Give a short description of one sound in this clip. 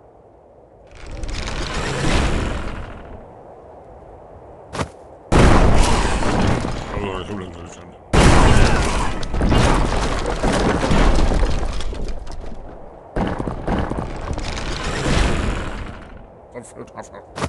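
A trebuchet swings and hurls a boulder.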